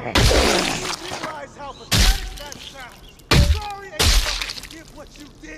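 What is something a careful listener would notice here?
A spiked bat smashes into a zombie with heavy thuds.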